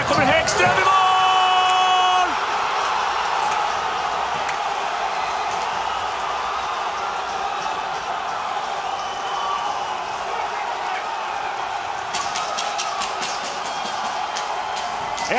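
A large crowd cheers and roars loudly in an arena.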